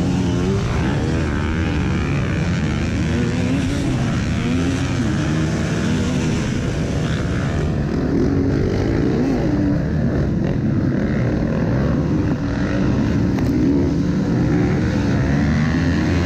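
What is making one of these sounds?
Several dirt bike engines buzz and whine ahead.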